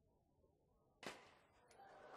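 A glass bottle smashes against metal with a sharp crash.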